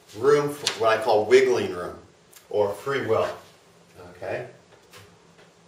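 A man speaks calmly and clearly close by.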